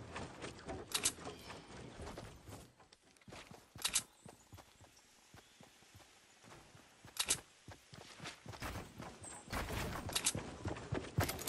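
Wooden walls snap into place with sharp clacks.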